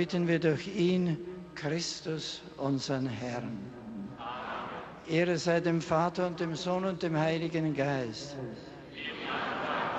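An elderly man chants a prayer into a microphone, carried over loudspeakers outdoors.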